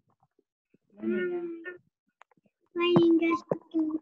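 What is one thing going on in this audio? A young child speaks loudly and with animation over an online call.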